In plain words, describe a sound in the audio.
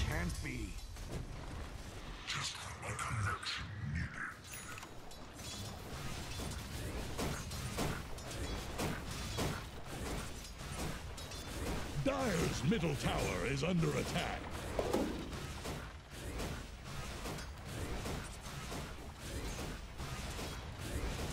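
Fantasy battle effects clash and crackle with fire and impacts.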